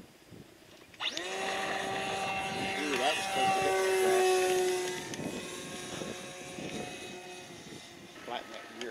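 A model airplane engine whines loudly as the plane takes off and climbs away.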